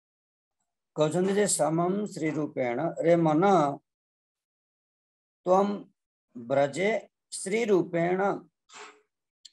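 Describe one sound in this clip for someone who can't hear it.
A middle-aged man speaks calmly through an online call, with pauses.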